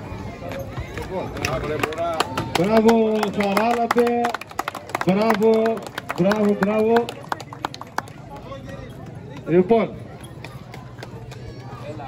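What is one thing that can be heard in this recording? Donkey hooves clop on pavement.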